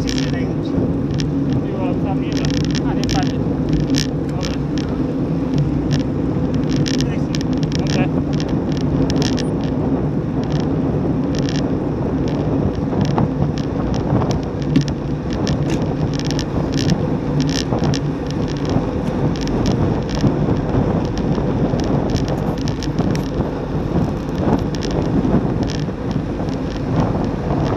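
A bicycle chain clicks and rattles over bumps.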